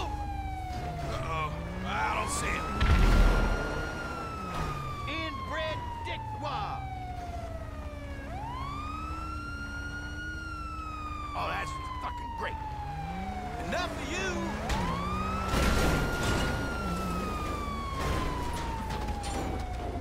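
A police siren wails, rising and falling slowly.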